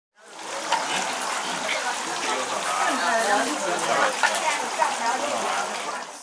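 A thin stream of water trickles and splashes into a small basin of water.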